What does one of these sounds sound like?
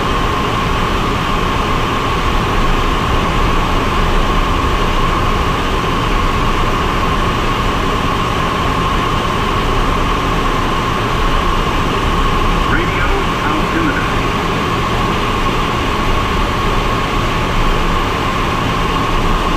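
A small plane's engine drones steadily from inside the cockpit.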